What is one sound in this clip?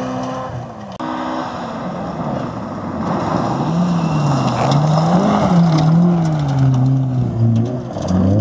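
A second rally car engine revs up and down through gear changes as it speeds by.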